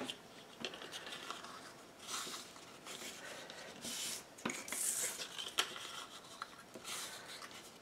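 Paper strips are creased and folded by hand.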